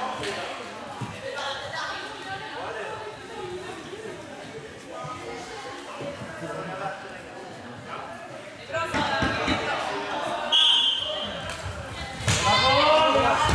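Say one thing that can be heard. Players shout and call to each other in a large echoing hall.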